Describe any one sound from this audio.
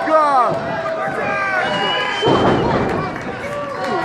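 A wrestler's body slams heavily onto the ring mat.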